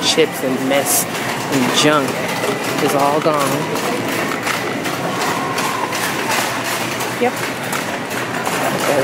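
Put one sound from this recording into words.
A shopping cart rattles as it rolls across a smooth floor.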